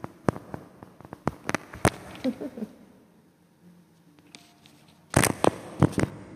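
Knocks and taps sound close to a microphone.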